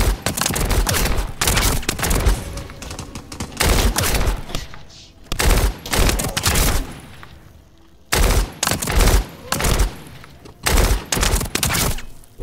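Heavy weapon blows and impacts crash in short bursts.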